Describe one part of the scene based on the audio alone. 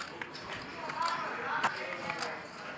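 Poker chips click together as they are handled.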